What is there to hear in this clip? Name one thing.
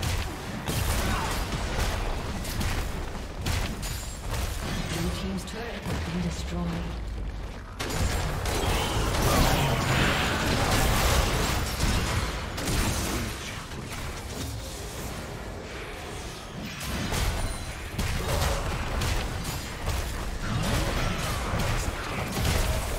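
Game spell blasts and hits crackle and thump in a fast fight.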